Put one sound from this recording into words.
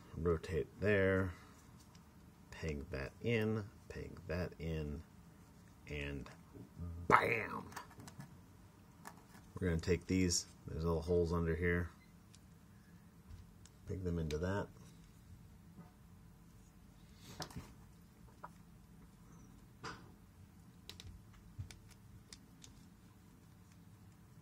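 Small plastic parts click and snap as a toy figure is handled and folded.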